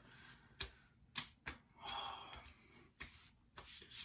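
Hands rub and pat against skin and hair.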